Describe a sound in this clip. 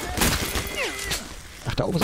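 A rifle magazine is reloaded with metallic clicks.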